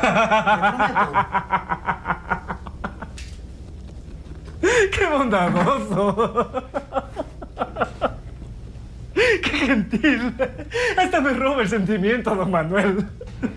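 A man laughs loudly and heartily close by.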